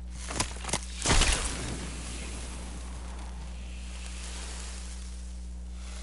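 Sparks crackle and fizz close by.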